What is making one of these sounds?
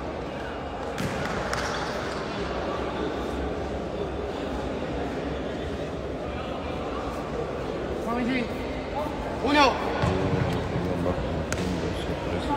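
A ball thuds off a foot.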